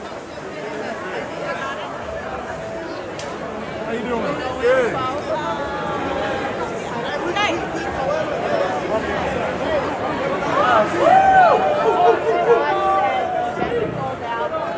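Sousaphones play loud low notes.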